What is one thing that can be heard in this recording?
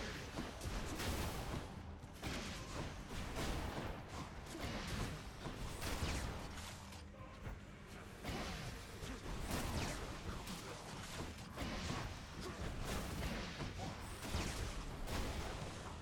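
Game combat effects whoosh and crash.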